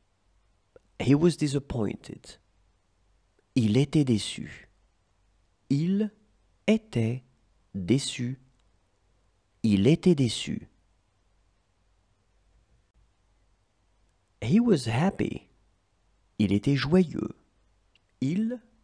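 A man speaks clearly and calmly in short phrases close to a microphone, with pauses between them.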